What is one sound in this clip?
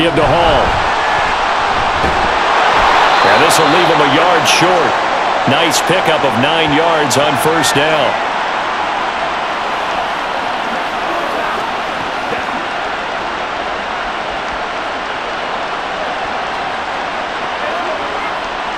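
A stadium crowd roars steadily all around.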